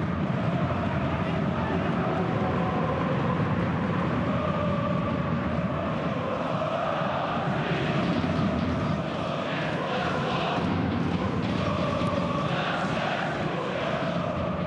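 A large crowd chants and roars steadily in an open stadium.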